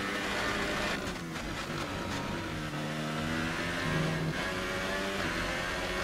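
A racing car engine drops in pitch as the car brakes, then revs up again.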